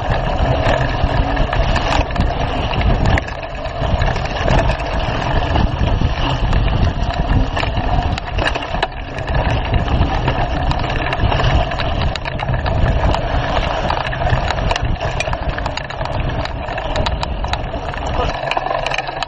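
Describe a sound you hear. Wind rushes loudly past a moving bike.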